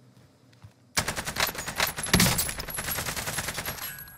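A rifle fires a sharp, loud shot.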